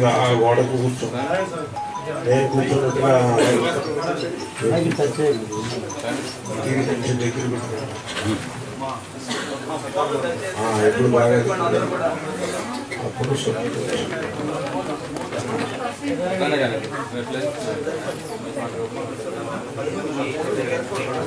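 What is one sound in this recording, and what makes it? An elderly man speaks steadily and with animation into a microphone.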